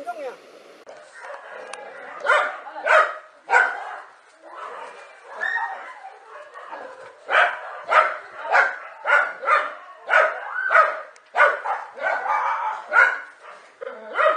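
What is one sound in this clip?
Dogs bark and snarl fiercely, close by.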